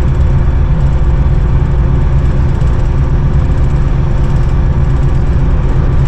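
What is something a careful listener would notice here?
A locomotive engine rumbles loudly and steadily.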